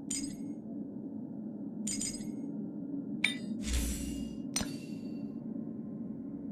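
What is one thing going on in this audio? Bright menu chimes ring with each selection.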